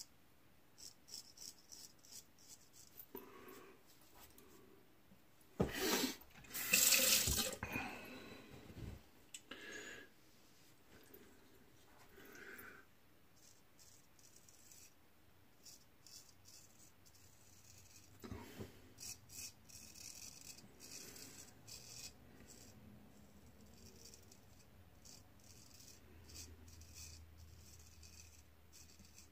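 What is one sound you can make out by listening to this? A razor scrapes softly across stubble in short strokes.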